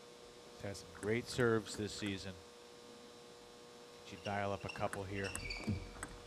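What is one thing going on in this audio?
A table tennis ball clicks back and forth off paddles and the table.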